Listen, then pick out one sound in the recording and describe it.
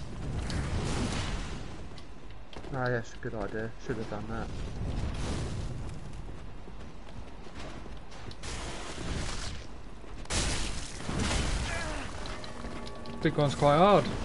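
Swords clash and slash in a game battle.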